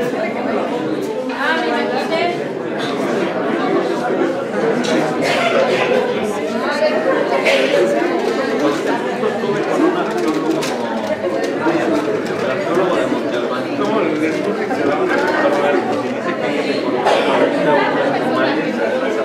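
Many adults chatter at once in a busy indoor room.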